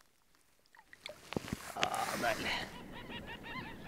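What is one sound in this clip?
Water splashes as a fish is released from a net in shallow water.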